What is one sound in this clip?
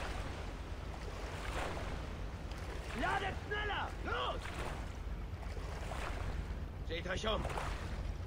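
Water splashes with swimming strokes.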